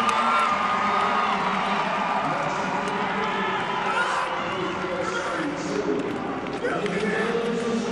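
A crowd cheers in a large indoor arena.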